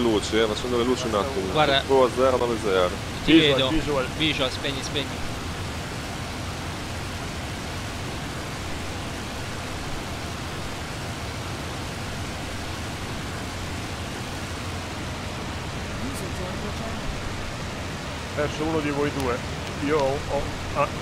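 An aircraft engine drones steadily.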